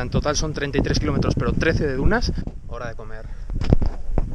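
A young man talks close by with animation.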